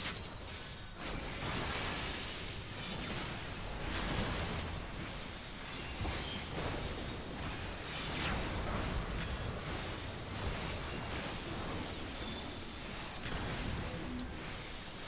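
Magic blasts crackle and boom in a fierce battle.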